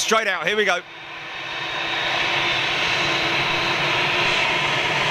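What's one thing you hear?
A jet airliner's engines roar and whine steadily, growing louder as the plane rolls closer.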